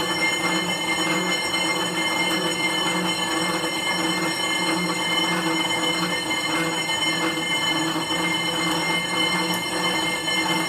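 An exercise bike's flywheel whirs steadily with a pulsing hum.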